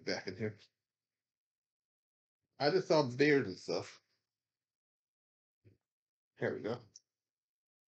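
A young man reads aloud close by, in a calm voice, with pauses.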